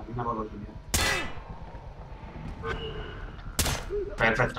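A silenced rifle fires with a sharp muffled thump.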